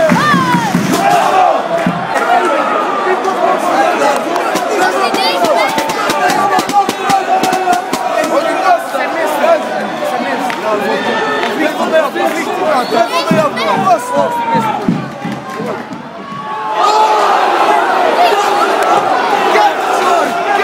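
A large stadium crowd chants and sings loudly.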